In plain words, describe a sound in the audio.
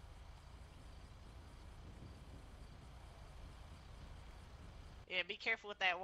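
A fire engine idles with a low rumble.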